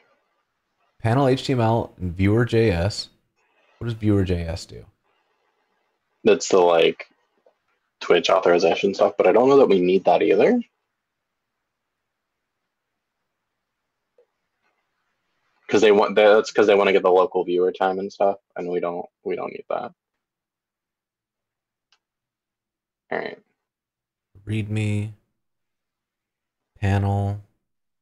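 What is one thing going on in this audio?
A man talks calmly through a microphone on an online call.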